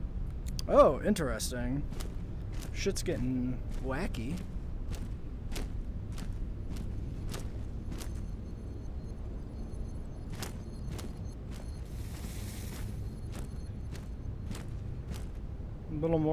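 Footsteps crunch steadily on sandy ground.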